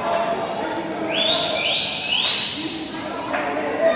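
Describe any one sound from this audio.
Children's shoes squeak on the court floor.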